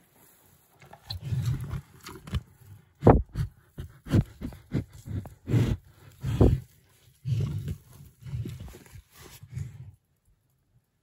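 A calf snuffles and sniffs close by.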